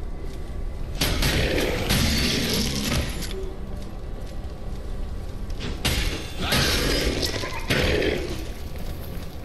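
Sword blows clash and strike armour in a fight.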